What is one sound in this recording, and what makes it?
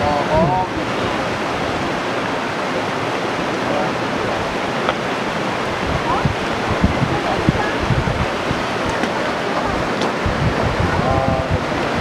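Water rushes and splashes steadily in a nearby stream.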